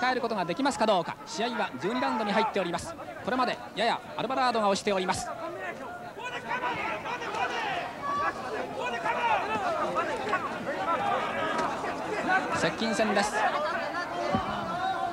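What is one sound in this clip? Boxing gloves thud against bodies in quick blows.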